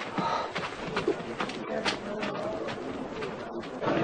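Footsteps shuffle as a group walks away.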